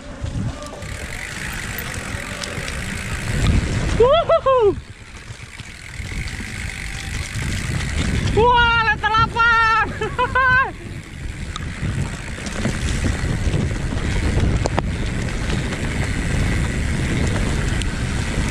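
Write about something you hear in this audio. A bicycle frame rattles over bumps.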